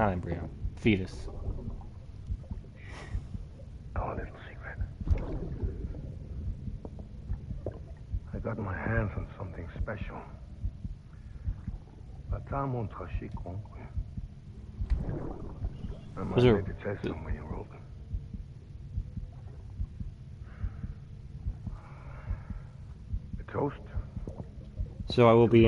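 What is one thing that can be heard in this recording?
A middle-aged man speaks softly and calmly, close by.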